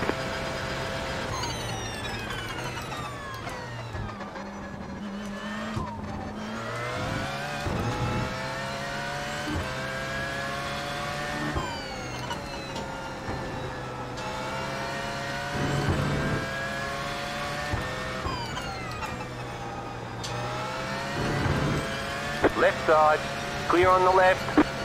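A racing car engine revs high and drops as the gears shift.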